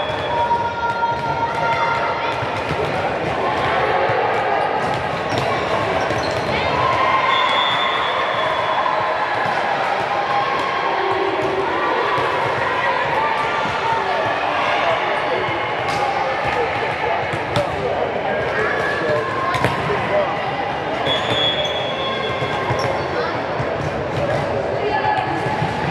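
Young girls call out and chatter in a large echoing hall.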